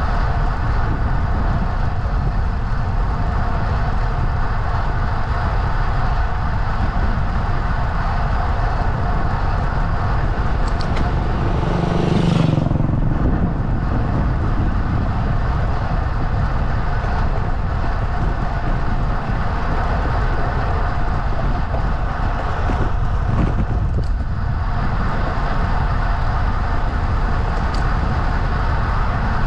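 Wind buffets loudly across a microphone on a moving bike.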